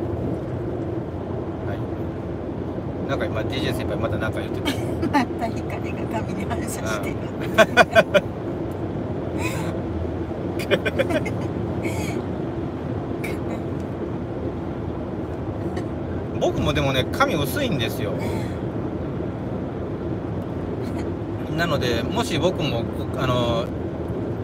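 A car engine hums steadily inside the car while driving.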